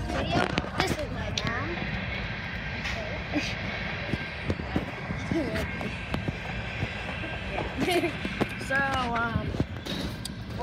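A young boy talks excitedly close to a phone microphone.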